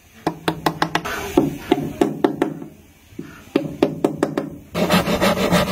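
A chisel scrapes and shaves wood.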